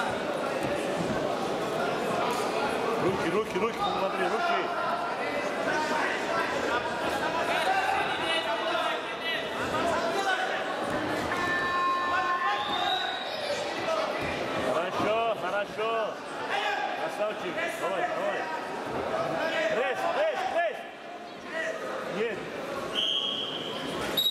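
Wrestlers' feet thud and scuff on a mat.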